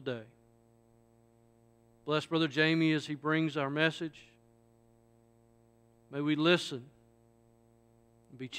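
A man speaks slowly through a microphone in a large, echoing hall.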